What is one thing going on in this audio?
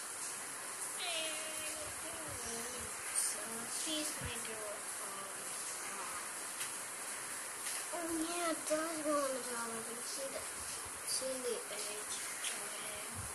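A young boy talks quietly close by.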